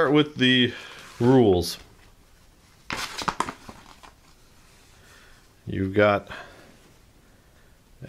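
A sheet of paper rustles as it is unfolded.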